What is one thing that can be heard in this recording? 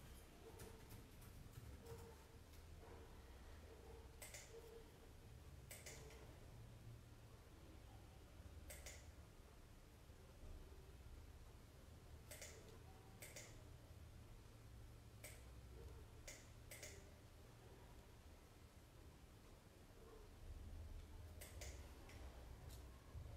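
A paintbrush taps and dabs softly on paper.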